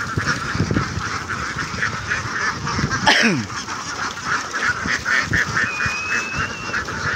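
A large flock of ducks quacks loudly and continuously close by.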